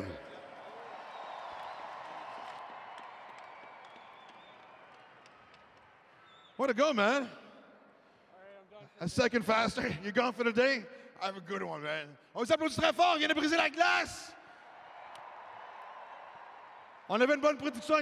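A crowd cheers and applauds in a large echoing arena.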